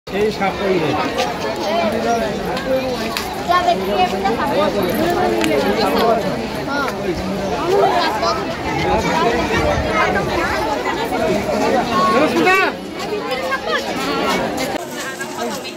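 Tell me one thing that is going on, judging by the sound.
A crowd of men, women and children chatters and calls out nearby outdoors.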